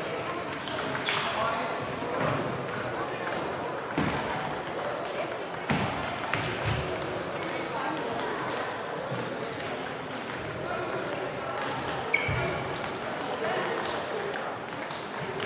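Table tennis balls click on tables and paddles throughout a large echoing hall.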